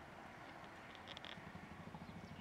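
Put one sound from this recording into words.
A sparrow chirps briefly.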